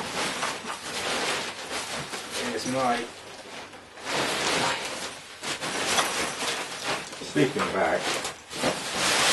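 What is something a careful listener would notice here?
Nylon fabric rustles and crinkles as a backpack is handled.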